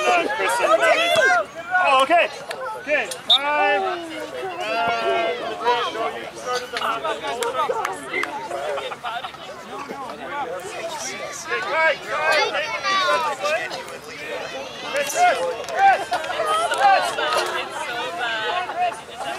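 Young children shout and chatter outdoors.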